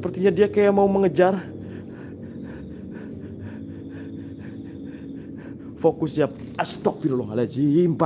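A young man speaks close by in an excited, hushed voice.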